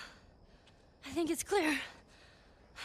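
A teenage girl speaks nearby in a shaky, frightened voice.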